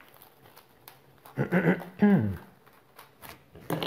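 Scissors snip through plastic wrap.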